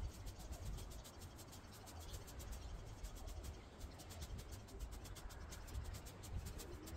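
A rake scratches and scrapes across cut grass.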